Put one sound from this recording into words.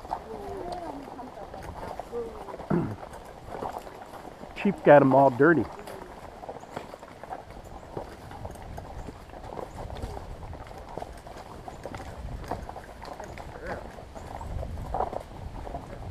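Horses' hooves clop slowly on a dirt trail.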